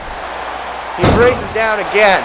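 A body slams down hard onto a wrestling mat with a heavy thud.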